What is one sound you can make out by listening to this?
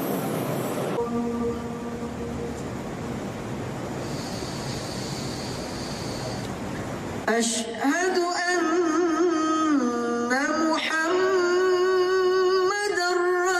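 A man sings a long, wavering call loudly and close to a microphone.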